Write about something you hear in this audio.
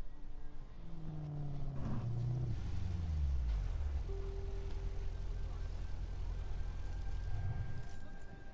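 A car engine rumbles low and settles into a steady idle.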